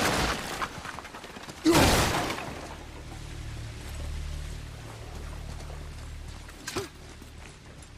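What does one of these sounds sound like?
Heavy footsteps thud on stone and wood.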